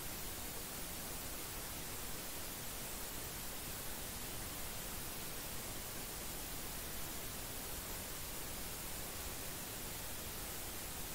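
Swimmers splash through the water of an echoing indoor pool.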